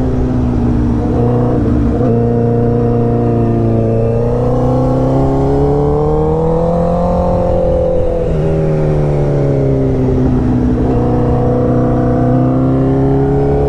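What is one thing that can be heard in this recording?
A motorcycle engine roars steadily, its pitch rising and falling as the rider shifts gears.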